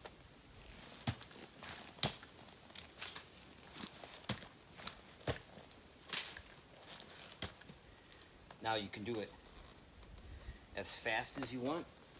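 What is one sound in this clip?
Metal gear clanks and knocks as a man climbs a tree.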